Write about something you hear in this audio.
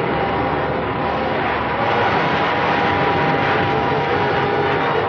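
A rocket pack roars steadily.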